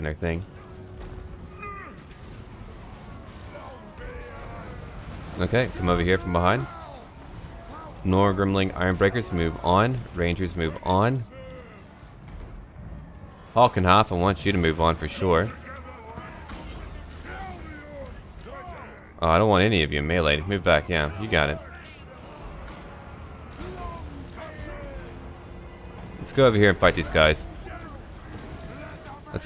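Weapons clash and soldiers shout in a large battle.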